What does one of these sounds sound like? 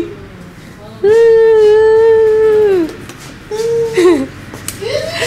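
A young man sings out a long, loud note close by.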